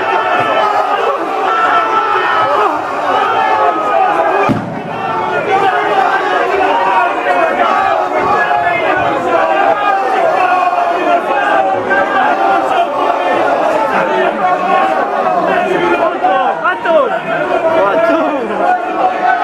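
A crowd of men cheers and chants loudly outdoors.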